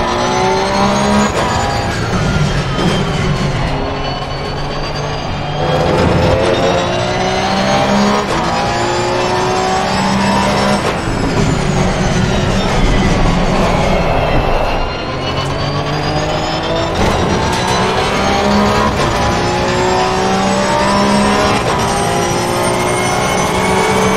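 A racing car engine roars, revving high and dropping through gear shifts.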